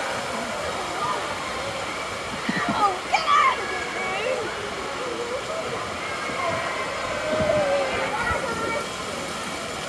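Women talk and laugh nearby.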